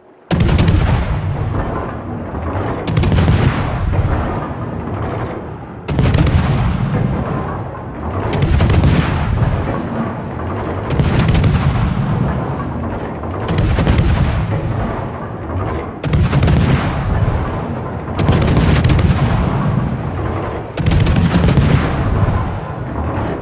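Heavy naval guns fire in booming salvos at a steady pace.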